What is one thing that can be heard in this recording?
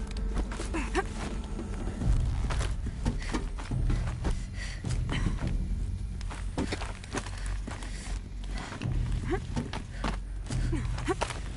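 A character's hands and feet clatter while climbing a metal structure.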